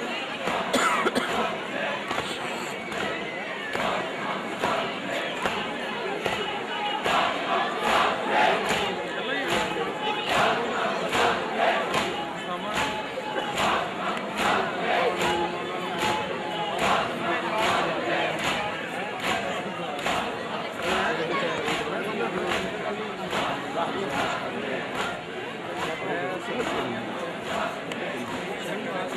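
A large crowd of men chants loudly together.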